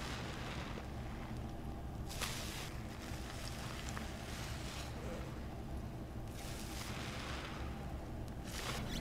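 A soapy sponge squelches as it is squeezed in water.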